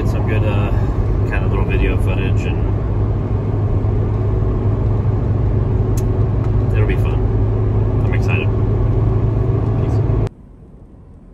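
A car engine drones steadily.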